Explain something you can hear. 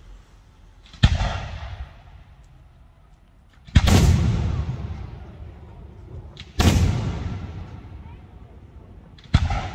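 Fireworks burst with loud booms that echo and fade.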